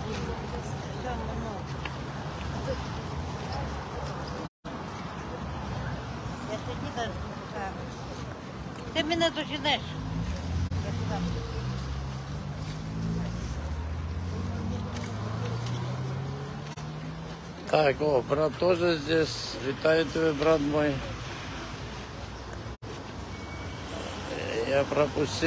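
A crowd of elderly people murmurs and chatters outdoors.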